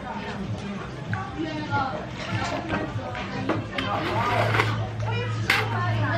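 A young woman sips soup from a bowl.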